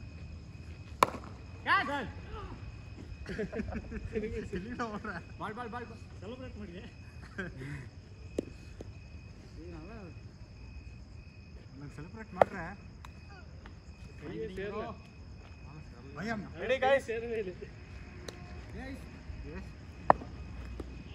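A cricket bat sharply strikes a ball several times.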